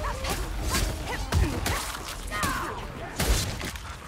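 A blade strikes flesh with heavy wet thuds.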